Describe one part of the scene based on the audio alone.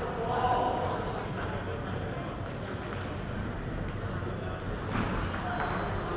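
A table tennis ball clicks back and forth off paddles and a table in an echoing hall.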